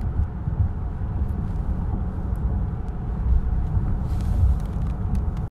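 A car rumbles low and steadily, heard from inside.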